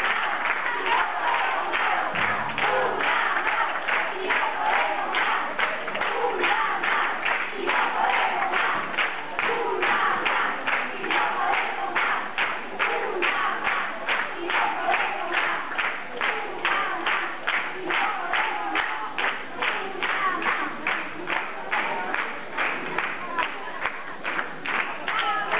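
An audience claps in steady rhythm together in a large hall.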